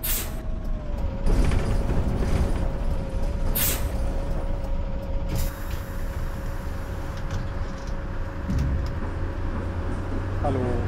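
A bus engine idles with a low steady drone.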